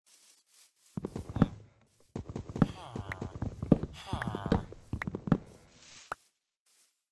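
An axe chops wood in quick knocks.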